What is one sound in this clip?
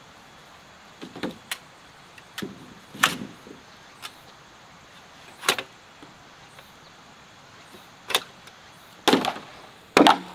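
Bamboo poles knock and clatter together as they are dragged and dropped.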